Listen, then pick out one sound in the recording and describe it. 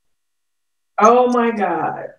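A second woman speaks calmly over an online call.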